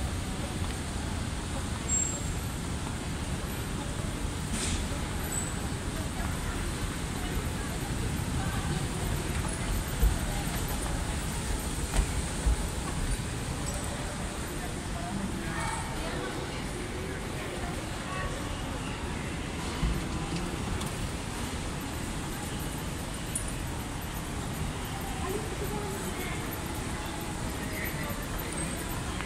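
A moving walkway hums and rumbles steadily.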